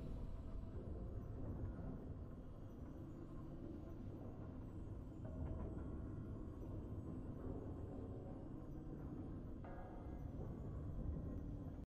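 Triumphant game music plays steadily.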